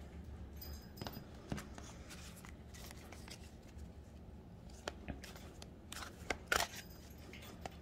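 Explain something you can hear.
Playing cards tap and flick as they are shuffled by hand.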